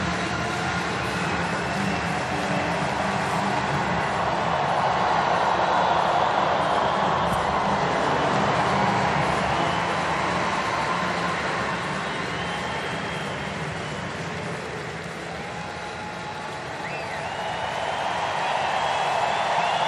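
A large crowd cheers and roars in an open stadium, swelling and then easing off.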